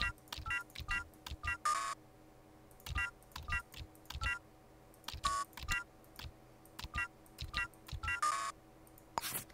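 Keypad buttons beep as numbers are entered.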